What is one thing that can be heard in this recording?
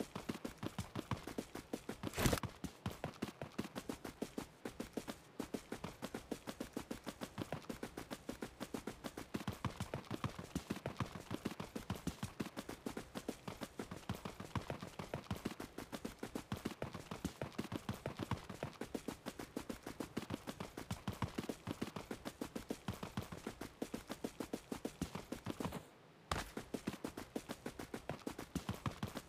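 Quick footsteps run steadily.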